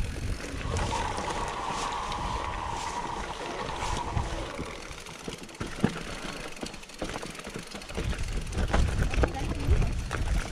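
Bicycle tyres crunch and rattle over rocky ground.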